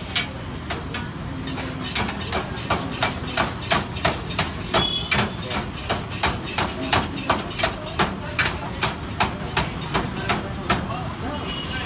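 A knife chops rapidly on a metal tray.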